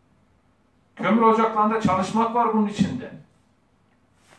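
A man speaks formally, close by.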